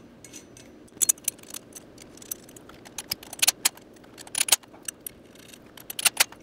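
Metal parts clink and rattle as a sprocket is fitted onto a wheel hub.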